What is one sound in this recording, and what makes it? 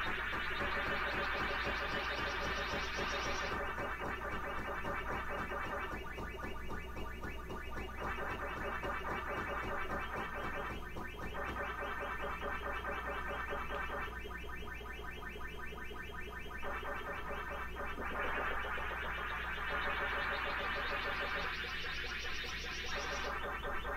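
Electronic arcade game sound effects chirp and warble rapidly and steadily.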